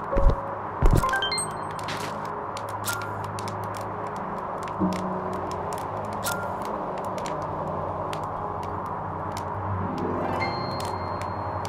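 A bright electronic chime rings out in a quick rising run of tones.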